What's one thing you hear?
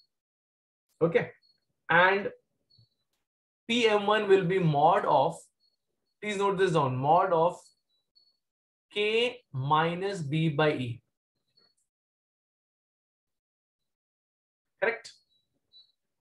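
A man explains calmly through a close microphone, in short bursts with pauses.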